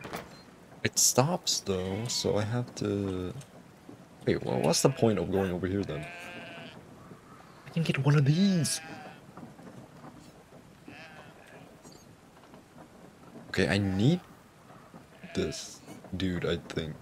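A young man talks casually into a microphone, in short bursts.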